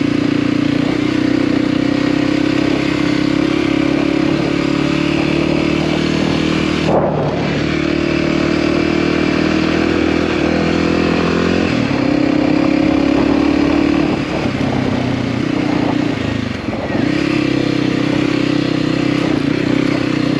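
A motorcycle engine drones steadily, rising and falling as the rider shifts.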